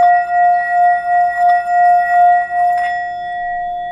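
A wooden stick rubs around the rim of a singing bowl.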